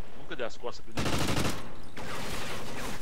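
A rifle fires a short burst of gunshots.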